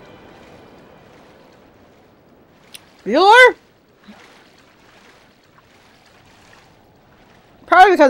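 A creature swims through water with soft splashing.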